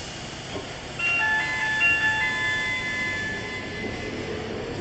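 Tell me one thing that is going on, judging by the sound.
Tram wheels squeal on the rails.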